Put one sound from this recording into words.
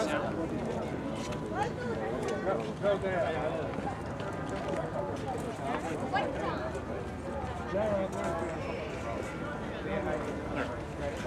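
Several adults talk to one another outdoors.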